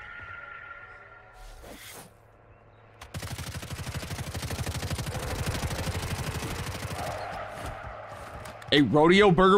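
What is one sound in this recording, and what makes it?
A young man speaks excitedly into a close microphone.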